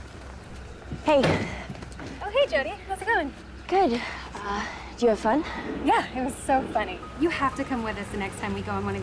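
A second young woman answers with animation.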